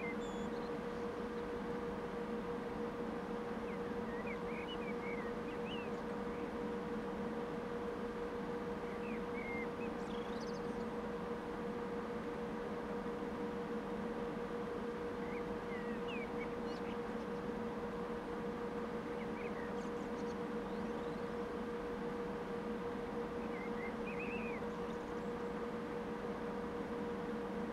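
An electric locomotive hums steadily as it idles.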